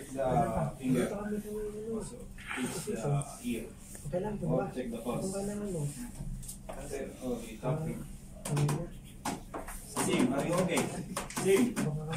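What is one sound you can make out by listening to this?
Hands press rhythmically on a training dummy's chest.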